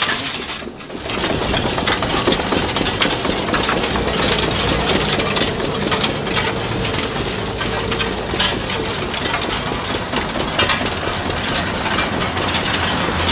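An old tractor engine chugs steadily.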